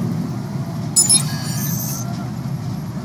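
Short electronic beeps and chirps sound from a hacking device.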